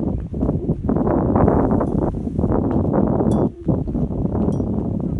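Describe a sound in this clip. Wind buffets and rumbles loudly outdoors.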